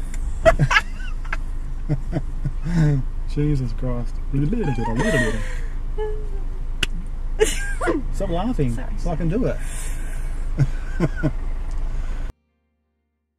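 A young woman laughs and talks close by.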